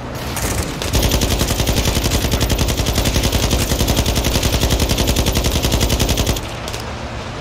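A machine gun fires in a rapid, steady burst.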